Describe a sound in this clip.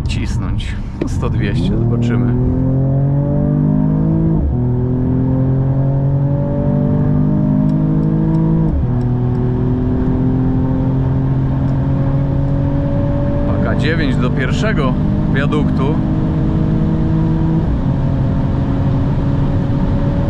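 A car engine roars loudly as it accelerates hard, rising in pitch.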